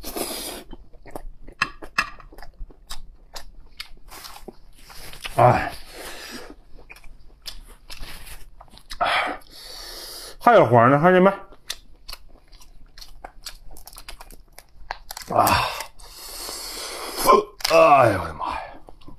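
A young man chews and slurps food close up.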